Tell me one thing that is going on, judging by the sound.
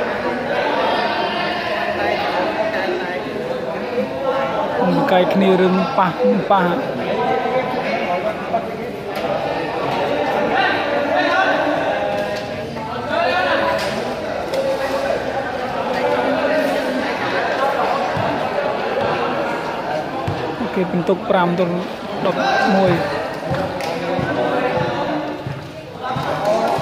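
Young men shout to one another as they play.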